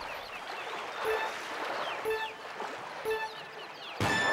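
Electronic countdown beeps sound three times, one per second.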